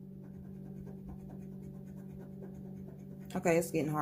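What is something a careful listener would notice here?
A metal edge scratches across a card.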